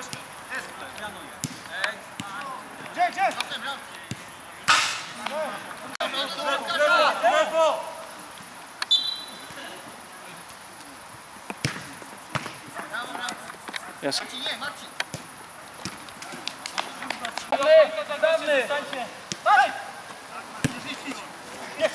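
Men shout to each other outdoors across an open field.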